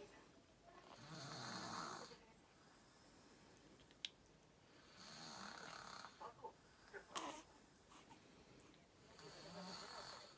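A newborn baby coos and whimpers softly close by.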